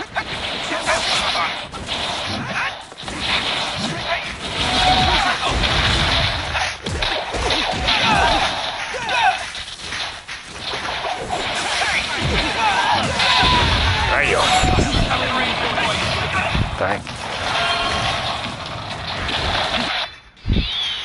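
Sword strikes and impacts clash in a fast fight.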